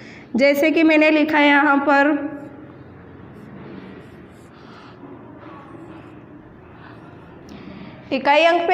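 A woman speaks clearly and slowly nearby, as if teaching.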